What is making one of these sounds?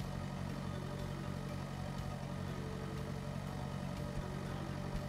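A tractor engine rumbles steadily as it drives.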